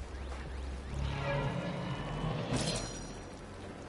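An electric energy effect whooshes and crackles.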